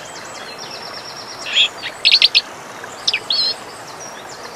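A small bird sings sharp trilling notes.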